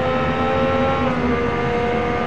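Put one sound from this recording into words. A racing car engine briefly dips in pitch as a gear shifts.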